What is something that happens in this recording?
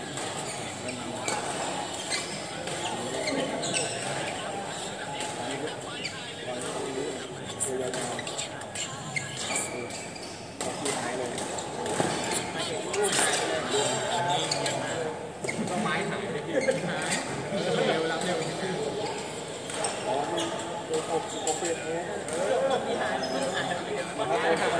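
Shuttlecocks are struck with rackets in sharp pops, heard all around in a large echoing hall.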